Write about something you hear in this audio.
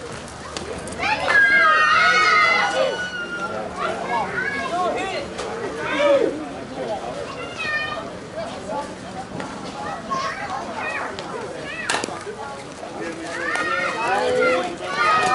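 A crowd of men and women cheers and shouts outdoors.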